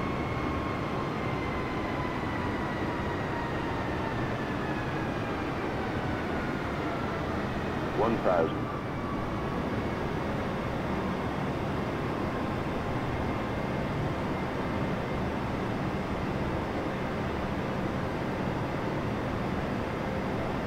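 Jet engines roar and whine steadily.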